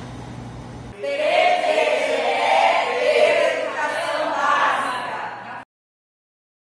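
A group of women and men shout together cheerfully.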